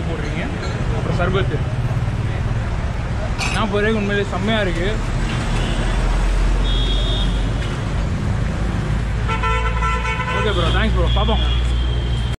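Traffic rumbles steadily outdoors nearby.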